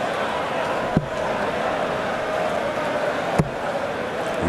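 Darts thud into a board one after another.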